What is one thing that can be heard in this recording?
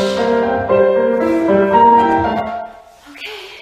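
A young woman sings nearby.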